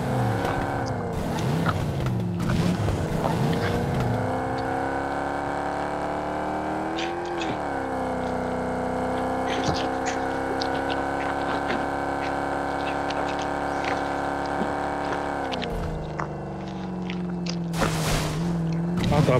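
A car engine roars steadily, its pitch rising and falling as it speeds up and slows down.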